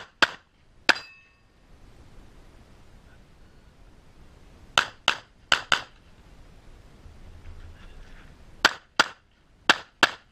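A pistol fires sharp shots in quick bursts outdoors.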